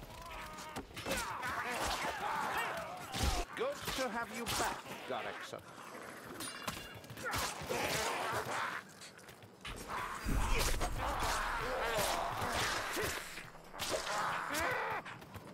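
Swords clang and slash.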